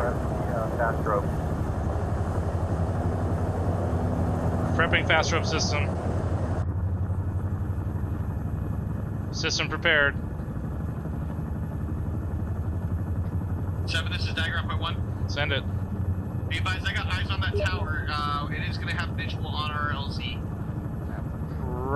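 A helicopter's rotor drones steadily.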